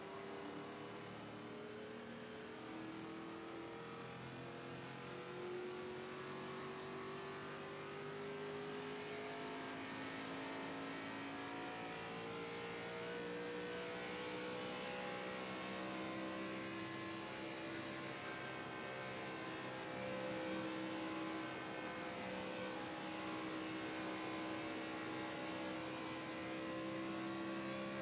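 A race car engine drones loudly and steadily, its pitch slowly climbing.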